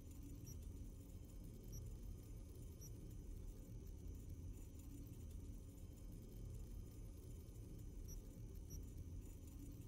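Short soft electronic blips sound now and then as menu items are picked.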